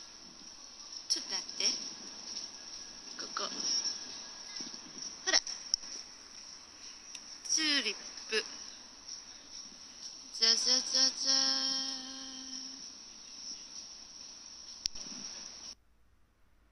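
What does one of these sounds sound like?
A woman speaks calmly, close by and slightly muffled.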